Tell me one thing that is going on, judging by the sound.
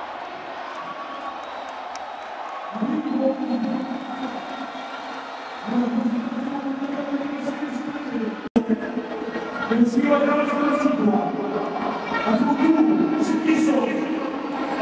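A large stadium crowd cheers and roars throughout.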